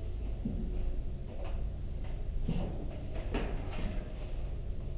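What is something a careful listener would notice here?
Footsteps thud on a hard floor close by.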